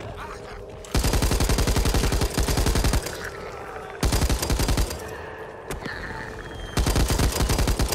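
An automatic rifle fires in rapid, loud bursts close by.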